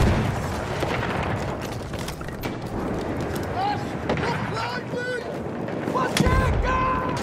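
Gunshots crack sharply nearby.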